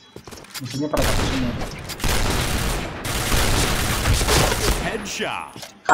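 A rifle fires loud bursts of shots.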